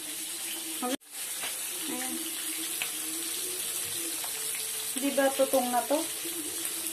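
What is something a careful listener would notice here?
Fish sizzles as it fries in a pan of oil.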